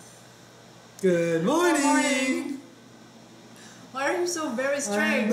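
A woman laughs and talks brightly.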